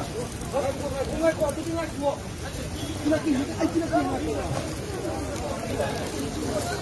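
Several men talk at once in a lively crowd.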